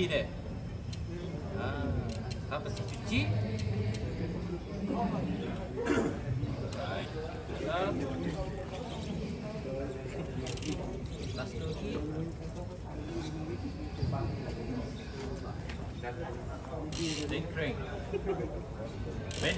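Metal bicycle parts click and clink under a man's hands.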